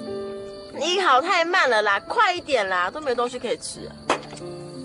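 A young woman complains loudly and impatiently, close by.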